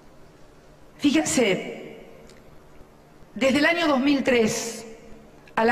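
A woman speaks forcefully through a microphone in a large hall.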